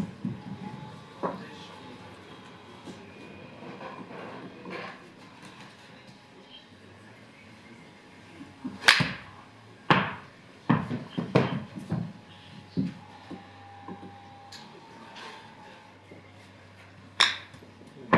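A golf club strikes a ball off a hitting mat.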